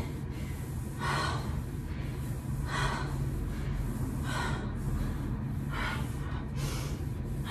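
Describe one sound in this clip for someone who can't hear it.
A woman breathes hard with each movement.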